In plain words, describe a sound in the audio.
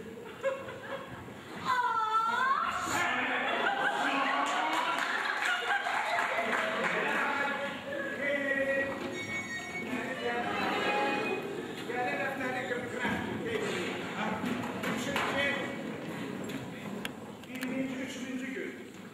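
Men talk and shout loudly in an echoing hall.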